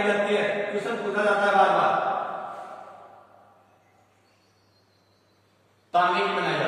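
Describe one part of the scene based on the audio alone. A man speaks clearly, as if explaining to a class.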